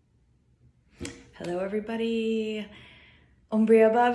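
A woman speaks warmly and expressively close to the microphone.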